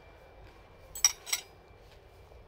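A spoon clinks against a ceramic bowl.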